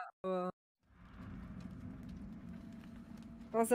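A fire crackles in a barrel.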